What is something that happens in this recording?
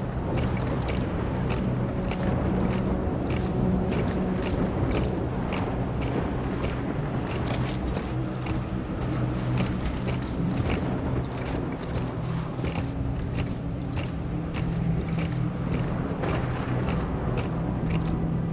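Strong wind howls steadily.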